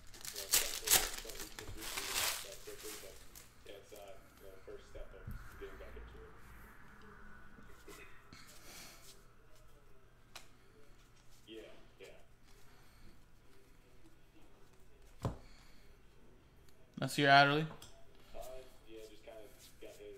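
Trading cards shuffle and flick against each other.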